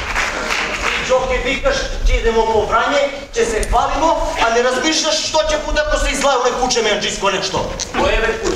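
A man speaks loudly and with animation in an echoing hall.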